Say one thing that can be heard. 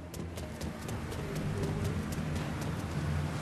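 Quick footsteps run across pavement.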